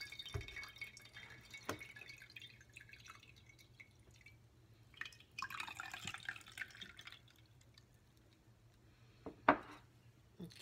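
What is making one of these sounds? A plastic juicer knocks against a counter and a glass.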